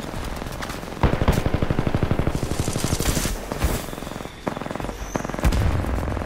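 An automatic gun fires in rapid bursts.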